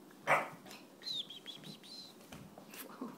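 A small dog yelps and whines in short high bursts.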